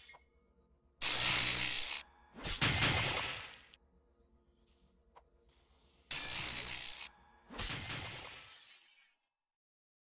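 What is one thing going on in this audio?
Magic blasts whoosh and burst loudly in short rushes.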